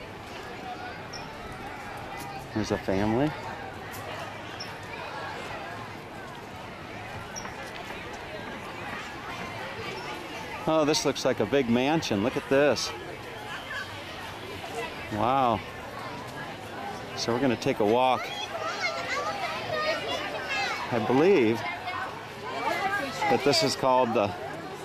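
A crowd of adults and children chatter outdoors.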